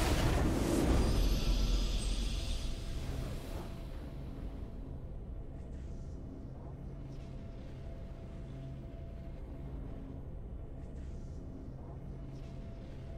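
A triumphant victory fanfare plays, then quiet music continues.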